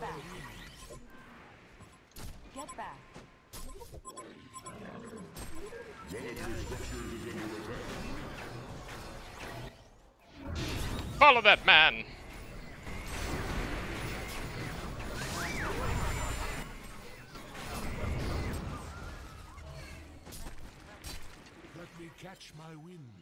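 Spells crackle and blast in a fight.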